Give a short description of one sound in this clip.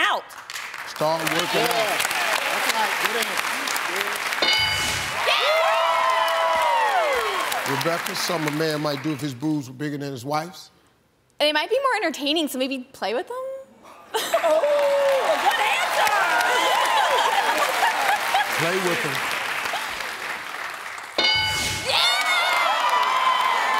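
A studio audience claps and cheers loudly.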